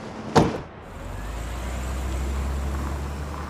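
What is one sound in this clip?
A car engine rumbles as a car pulls away.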